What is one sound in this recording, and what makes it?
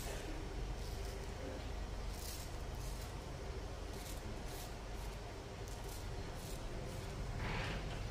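A razor scrapes over stubble in short strokes.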